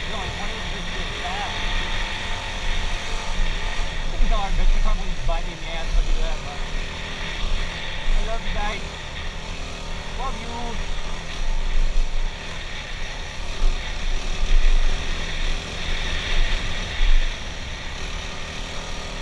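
A dirt bike engine roars and revs up close.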